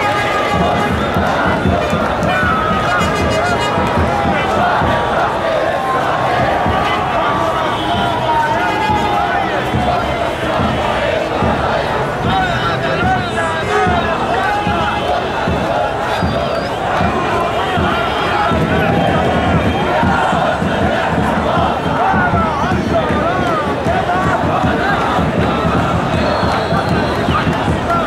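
A large crowd of men chants loudly outdoors.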